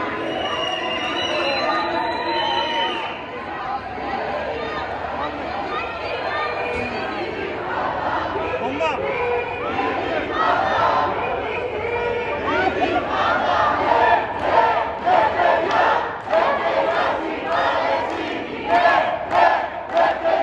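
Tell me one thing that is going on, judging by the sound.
A large crowd of men and women chants and shouts outdoors.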